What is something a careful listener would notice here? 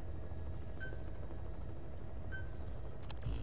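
A menu beeps softly twice.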